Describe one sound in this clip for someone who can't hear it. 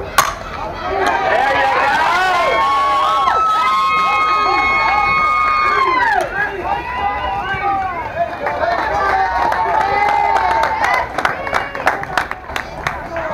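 Young women shout and cheer excitedly from nearby.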